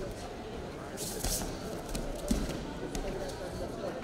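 Bodies thud onto a mat.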